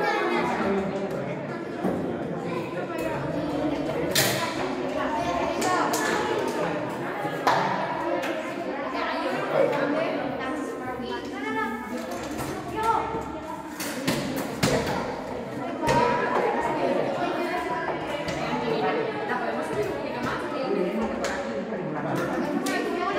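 Children and adults chatter throughout a room that echoes a little.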